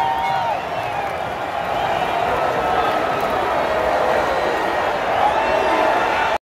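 A large stadium crowd roars and chants loudly all around.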